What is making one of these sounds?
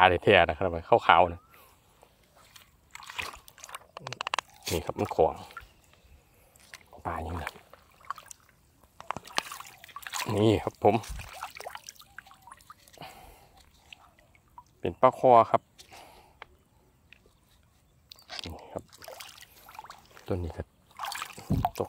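Water splashes and sloshes as a hand moves through it.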